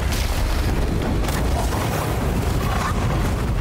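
A deep rumbling blast booms.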